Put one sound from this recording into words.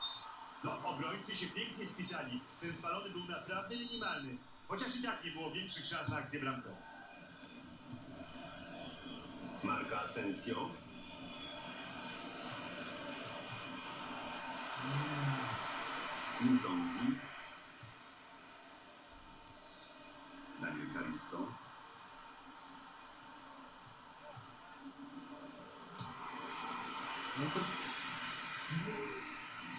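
A stadium crowd cheers and roars through a television speaker.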